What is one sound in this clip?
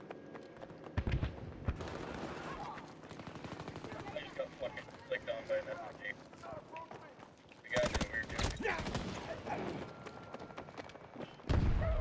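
Loud gunshots crack nearby in short bursts.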